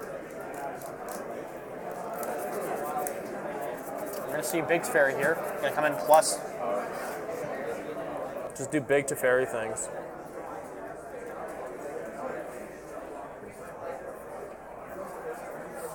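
Playing cards slide and tap softly on a table.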